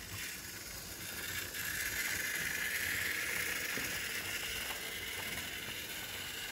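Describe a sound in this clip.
Model train wheels squeal with a high whine.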